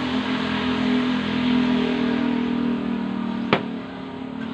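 Liquid pours into a bucket with a steady splashing.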